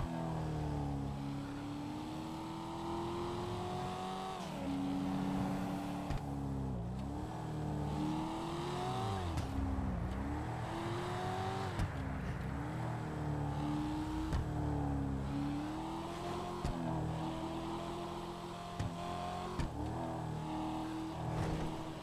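A car engine roars steadily, rising in pitch and dropping with each gear change.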